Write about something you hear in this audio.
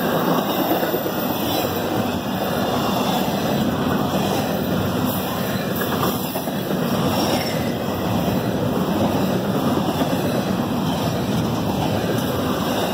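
A long freight train rumbles and clatters steadily past close by.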